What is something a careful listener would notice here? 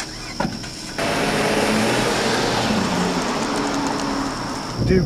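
A car engine revs and the car drives away.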